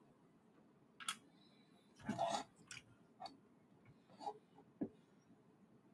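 Plastic parts click and clatter as they are handled.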